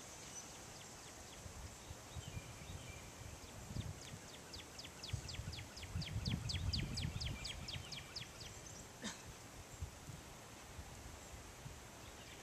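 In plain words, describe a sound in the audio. Wind gusts softly outdoors.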